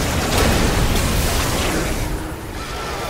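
A gun fires in rapid bursts.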